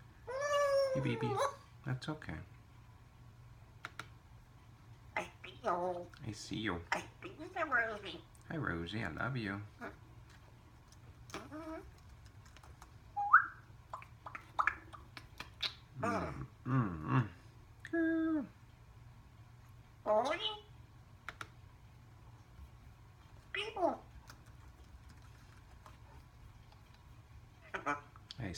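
A parrot squawks, whistles and chatters close by.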